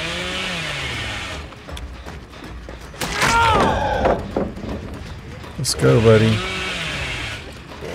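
A chainsaw engine roars and revs.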